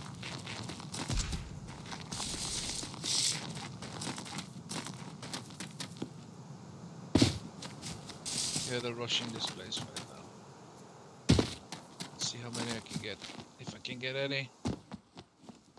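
Footsteps run quickly over dirt and stone.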